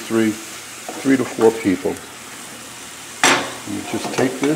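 A spatula scrapes and stirs in a metal pan.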